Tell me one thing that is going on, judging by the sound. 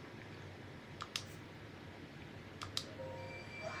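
Short game menu clicks sound.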